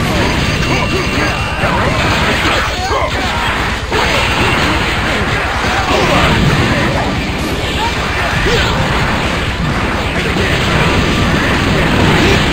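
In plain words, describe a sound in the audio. Punches and kicks land with loud thuds.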